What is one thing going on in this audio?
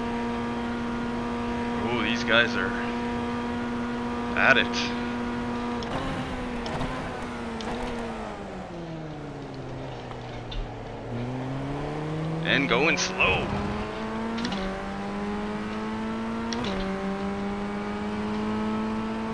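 A race car engine drones steadily, dropping in pitch while braking and rising again as the car speeds up and shifts gears.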